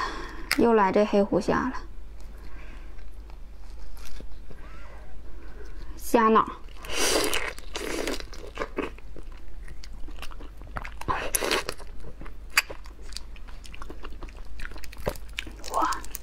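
Shrimp shells crack and crunch as they are pulled apart.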